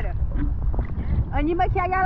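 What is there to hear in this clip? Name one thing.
A hand splashes through the water.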